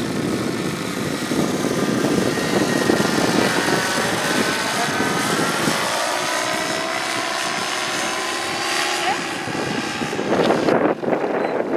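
A paramotor engine drones overhead, its pitch slowly shifting as it flies past.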